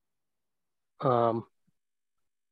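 A young man says a few words over an online call.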